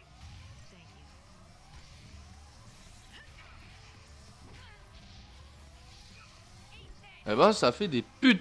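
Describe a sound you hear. Magic blasts crackle and whoosh during a fight.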